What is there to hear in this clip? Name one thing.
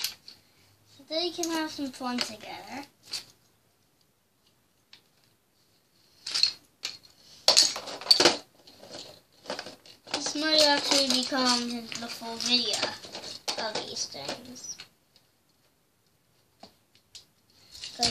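Plastic toy bricks clatter and click as they are sorted.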